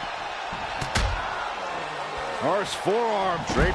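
A heavy body thuds onto a wrestling ring.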